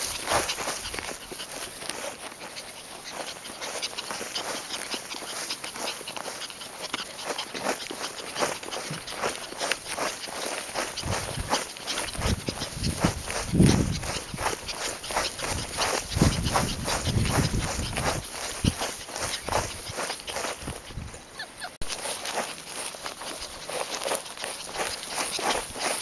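A small dog rustles through grass.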